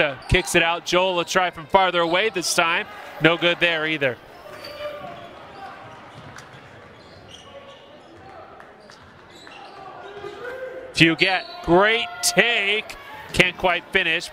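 Sneakers squeak on a hardwood floor.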